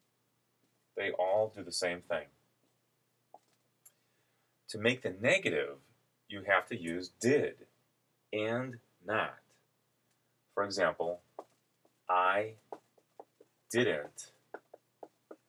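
A man speaks calmly and clearly, close by, in short phrases.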